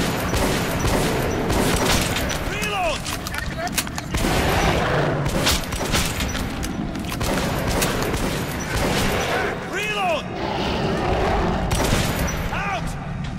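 A gun fires loud shots in rapid bursts.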